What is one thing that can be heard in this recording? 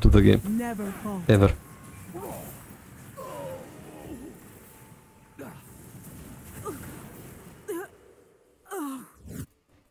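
Magical blasts and whooshes burst out in a fast fight.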